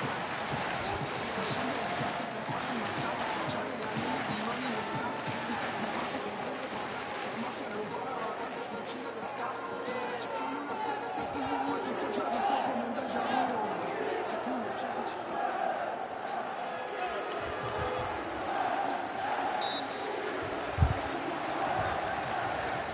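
A crowd murmurs and chatters throughout a large echoing arena.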